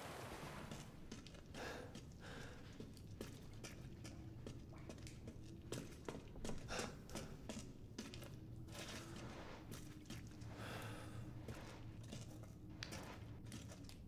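Footsteps scuff on rock in an echoing cave.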